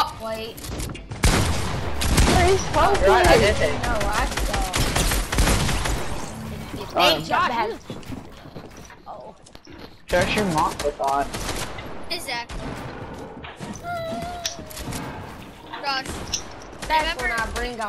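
Gunshots crack in quick bursts from a game.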